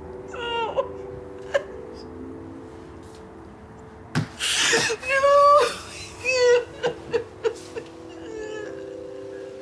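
A woman sobs and wails loudly nearby.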